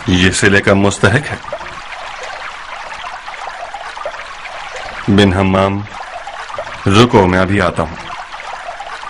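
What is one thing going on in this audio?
A man speaks firmly, nearby.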